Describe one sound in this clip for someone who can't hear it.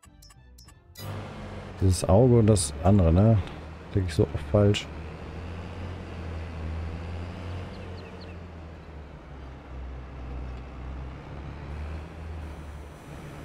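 A combine harvester engine drones steadily.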